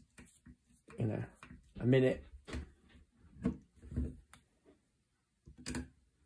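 A wooden gun stock knocks against a wooden bench as it is handled.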